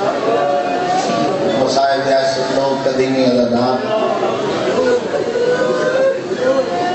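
A man chants loudly and passionately into a microphone over a loudspeaker.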